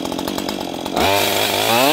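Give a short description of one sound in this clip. A chainsaw engine revs up sharply.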